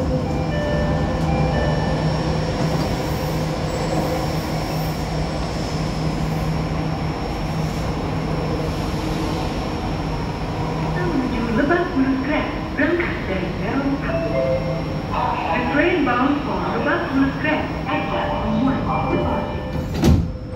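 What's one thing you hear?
A train hums steadily while standing still.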